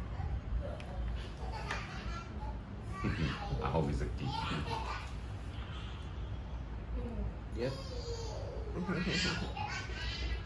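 A middle-aged man talks casually nearby.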